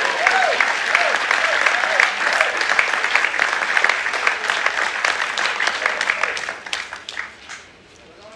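A group of ukuleles strums together.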